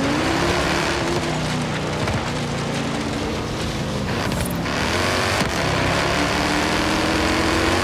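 Tyres rumble and crunch over a dirt track.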